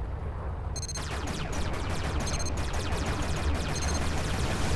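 Rapid laser shots fire in quick bursts.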